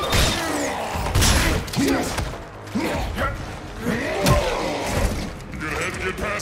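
A monster snarls and screeches.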